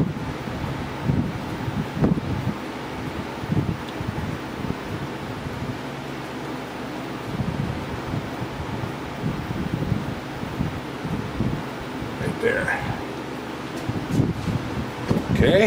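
A milling machine rumbles steadily while cutting metal.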